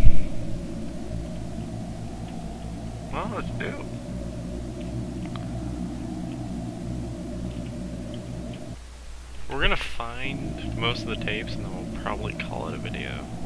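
Soft footsteps patter on a wooden floor.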